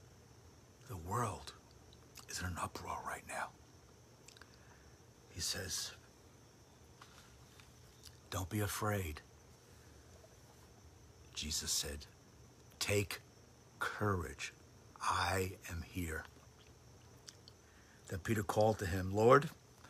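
An older man speaks calmly and close to a microphone, in short phrases with pauses.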